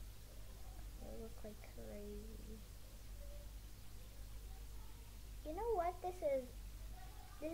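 A young girl speaks quietly and hesitantly close to a microphone.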